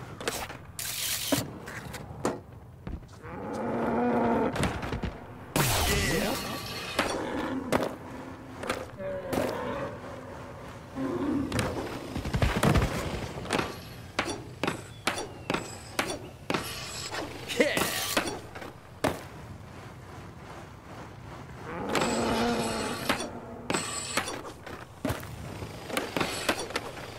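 Skateboard wheels roll on concrete.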